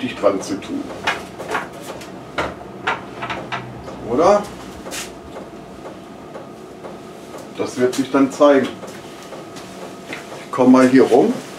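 A middle-aged man speaks nearby in short phrases.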